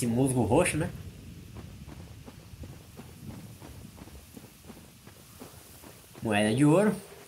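Footsteps crunch steadily over soft ground.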